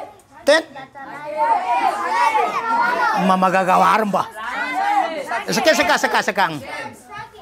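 Many children shout and call out eagerly together.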